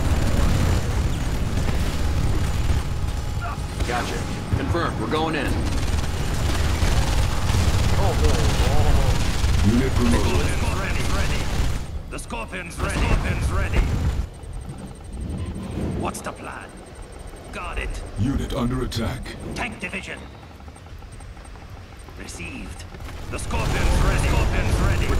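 Gunfire rattles in a busy battle.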